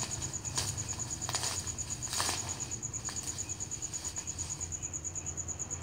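Plastic wrap crinkles and rustles as it is handled.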